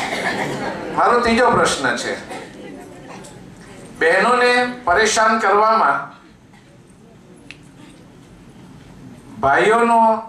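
An older man speaks with animation into a microphone over a loudspeaker.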